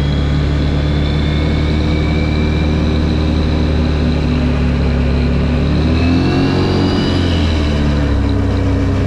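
Tyres hiss on wet asphalt.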